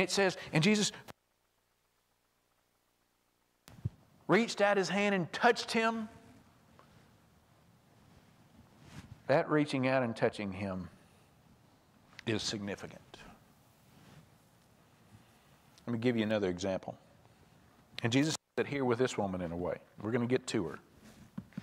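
A man speaks into a microphone over loudspeakers in a large echoing hall, in short phrases with pauses.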